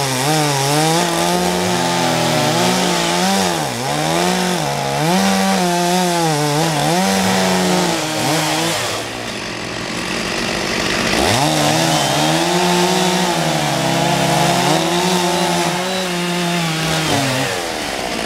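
A chainsaw engine revs loudly, rising and falling again and again.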